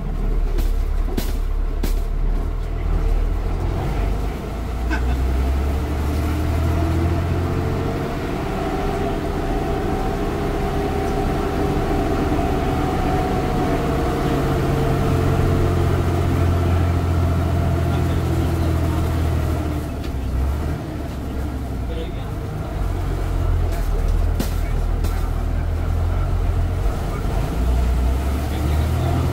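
A bus engine rumbles and whines as the bus drives along a road.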